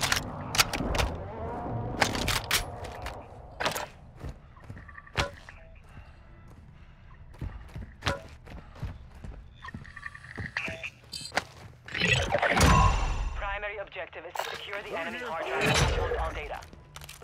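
Footsteps thud on a floor indoors.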